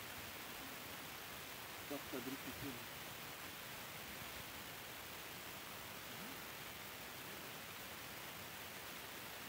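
A light breeze rustles through the trees.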